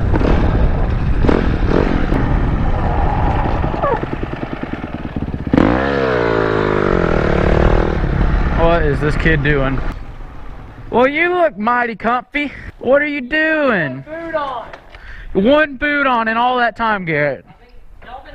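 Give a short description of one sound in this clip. A dirt bike engine roars and revs up and down close by.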